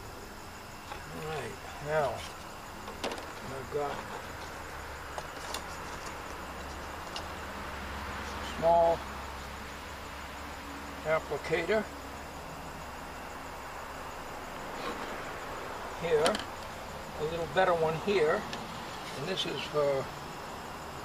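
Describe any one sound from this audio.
An elderly man talks in short, calm bursts nearby.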